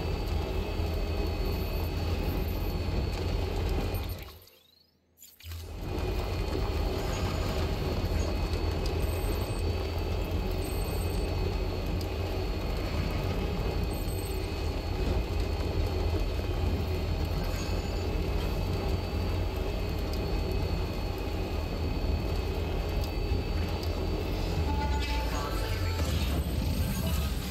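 A truck engine hums steadily as it drives along a road.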